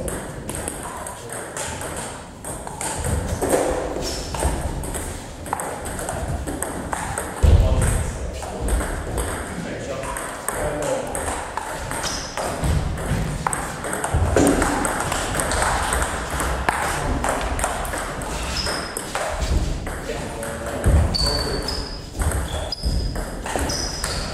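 A table tennis ball clicks back and forth between paddles and the table.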